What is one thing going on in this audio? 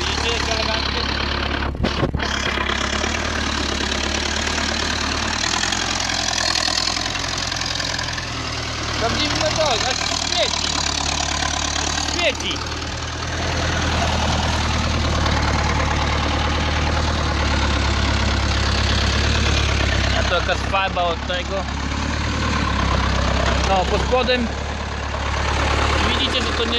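A tractor engine idles with a steady low rumble nearby.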